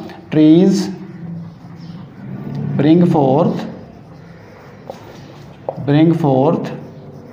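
A middle-aged man speaks slowly and clearly, as if reading aloud.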